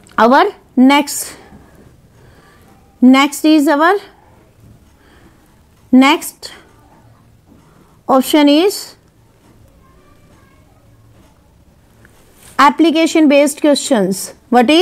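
A woman speaks clearly into a close microphone, in short phrases with pauses.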